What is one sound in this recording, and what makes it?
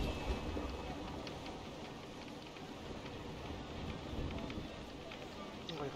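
Wind blows steadily through sails and rigging.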